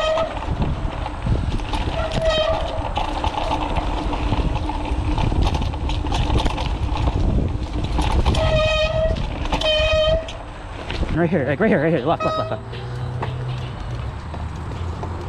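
A mountain bike rattles and clanks over bumps.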